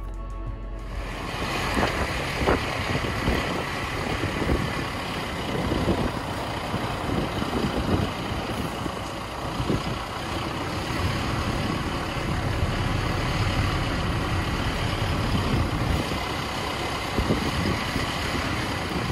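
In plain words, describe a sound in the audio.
Tyres roll and crunch over loose sand.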